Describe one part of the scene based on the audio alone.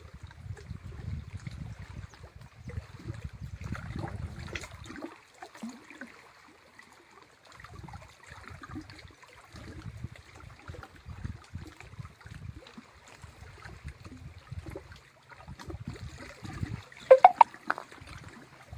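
Small waves lap and splash on open water.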